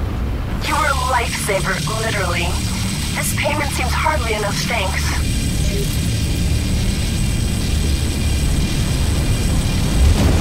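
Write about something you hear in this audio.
A laser cannon fires with a steady, low hum.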